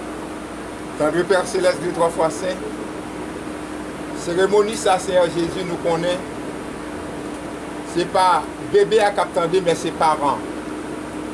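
An elderly man speaks calmly in short bursts.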